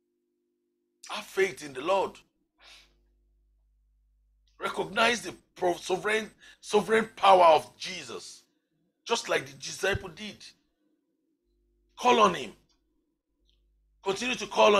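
A man speaks forcefully into a close microphone in short bursts, with pauses.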